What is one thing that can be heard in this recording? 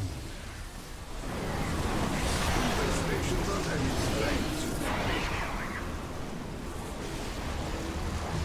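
Explosions and energy blasts roar loudly.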